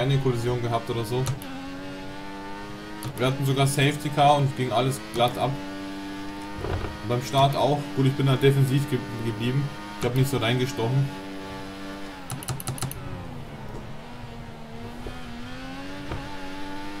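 A Formula One car engine screams at high revs and shifts through the gears.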